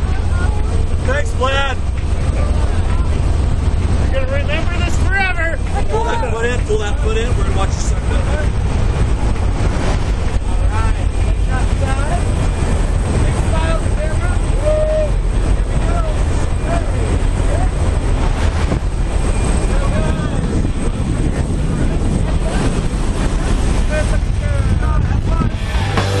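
Men shout and cheer loudly over the engine noise.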